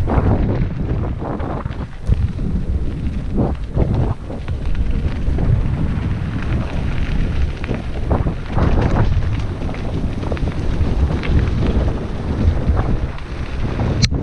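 Wind buffets past, rushing and roaring.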